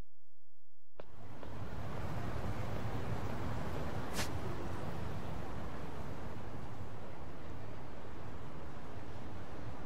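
A busy street hums with distant crowd noise.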